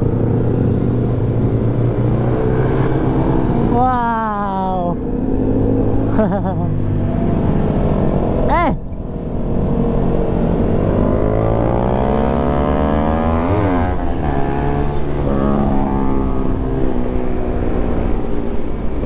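A motorcycle engine hums steadily up close.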